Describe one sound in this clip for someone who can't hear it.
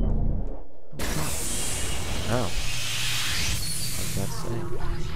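A heavy gun fires with a loud, hissing blast.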